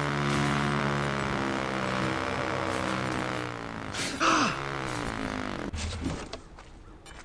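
A motorbike engine revs loudly, then cuts off.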